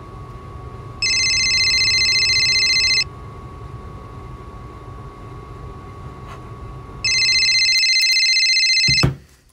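An electronic buzzer gives off a loud, harsh buzz in two long bursts.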